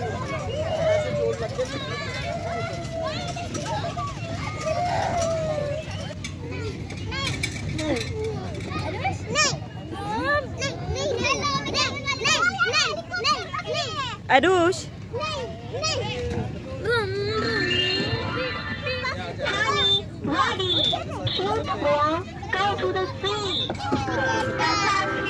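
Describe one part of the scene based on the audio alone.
Young children talk and call out nearby.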